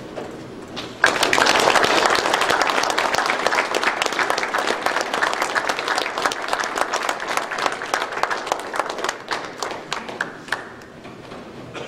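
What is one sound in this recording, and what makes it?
A crowd applauds in a large room, the clapping slowly dying away.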